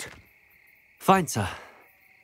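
A young man answers briefly.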